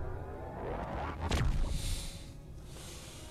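A spaceship roars past with a deep whoosh.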